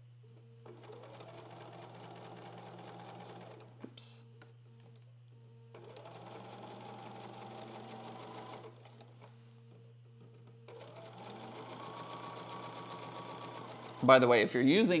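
A sewing machine whirs in short steady bursts.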